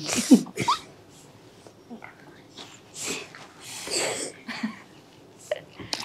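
Children giggle and laugh close by.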